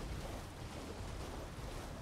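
A horse gallops splashing through water.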